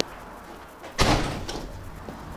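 A glass door thuds shut.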